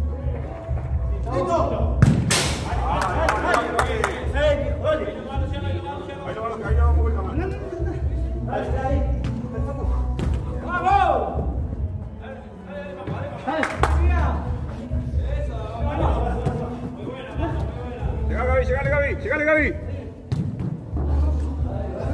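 A ball thumps as players kick it.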